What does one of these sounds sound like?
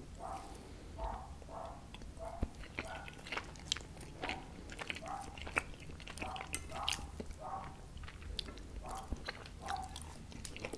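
A fork clicks and scrapes against a plate.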